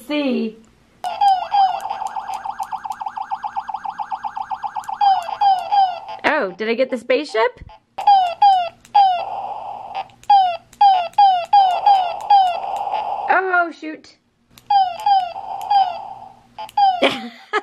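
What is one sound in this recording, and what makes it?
A handheld video game beeps and chirps with rapid electronic blips.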